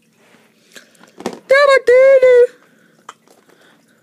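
A small plastic toy topples over and taps onto a tabletop.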